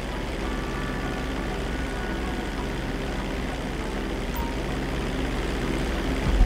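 Propeller engines of an airplane drone steadily.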